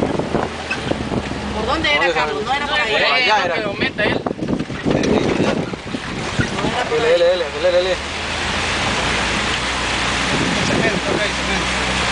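Car tyres splash through shallow water.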